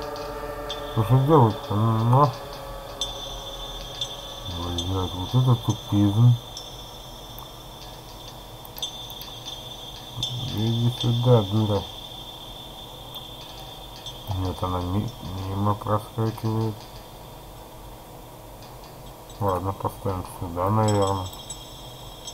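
An elderly man speaks in short, strained bursts.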